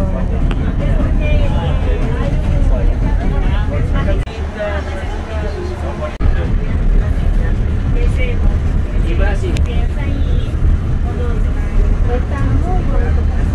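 A train rumbles steadily along its track.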